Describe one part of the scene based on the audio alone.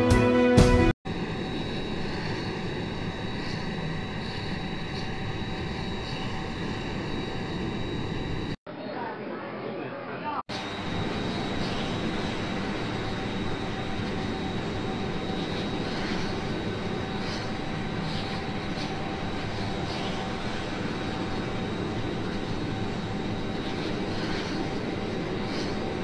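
Jet engines hum steadily at idle nearby.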